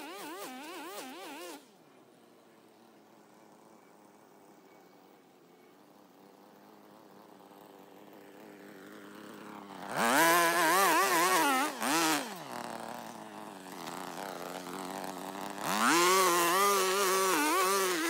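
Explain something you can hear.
A string trimmer engine whines and revs up and down, coming closer.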